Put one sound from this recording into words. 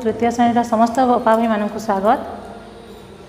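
A woman speaks clearly and steadily, close by.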